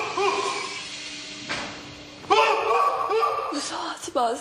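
A young man exclaims in surprise.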